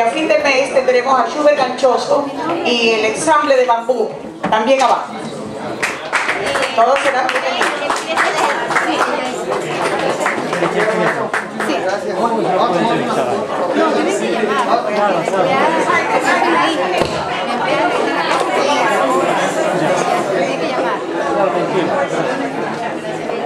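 A live band plays in an echoing room.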